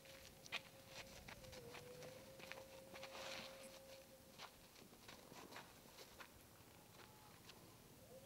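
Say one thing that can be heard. Footsteps scuff on dry gravelly ground.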